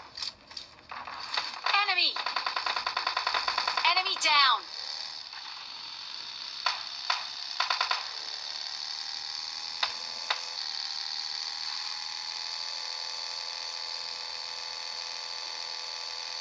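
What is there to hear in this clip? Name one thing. A game's vehicle engine hums steadily from a phone speaker.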